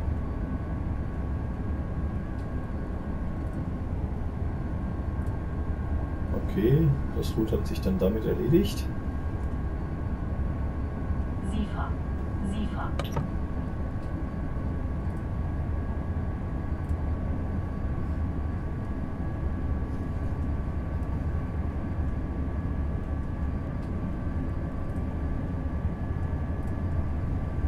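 A train engine hums steadily with a low rumble.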